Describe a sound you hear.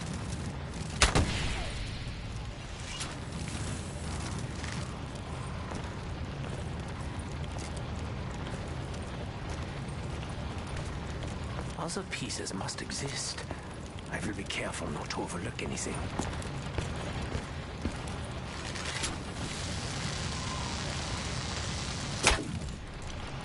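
A bow fires an arrow with a sharp snap.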